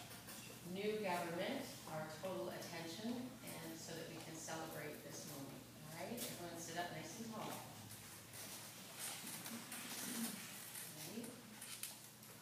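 A woman speaks calmly through a loudspeaker in a large echoing hall.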